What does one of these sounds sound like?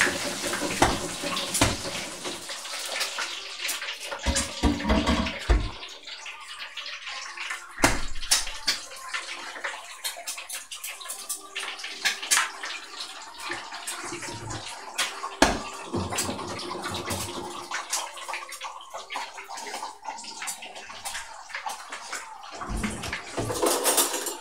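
Dishes and utensils clink and clatter nearby.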